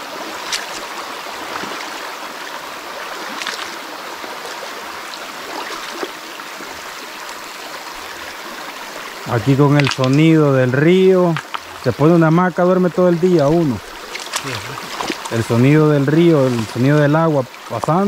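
Shallow water trickles gently over stones.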